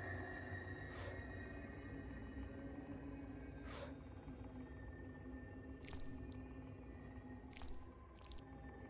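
Footsteps thud slowly on a wooden floor.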